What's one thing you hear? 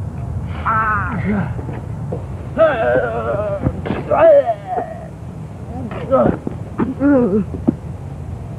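A young man yells and shouts excitedly nearby.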